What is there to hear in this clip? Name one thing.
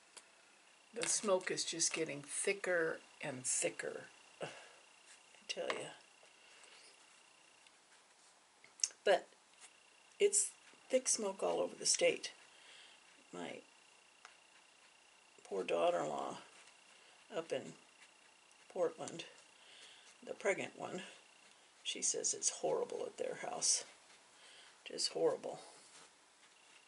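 A middle-aged woman talks calmly and close by, in short phrases with pauses.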